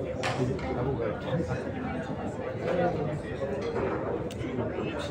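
A crowd of men murmurs and chatters.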